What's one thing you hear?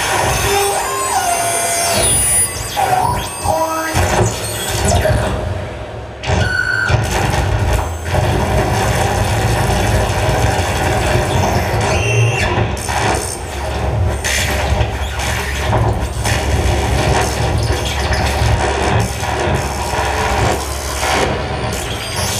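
Loud electronic music with a heavy bass plays through speakers.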